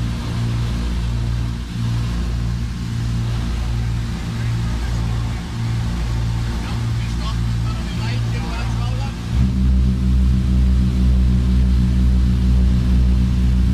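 Aircraft propeller engines drone steadily, heard from inside the cabin.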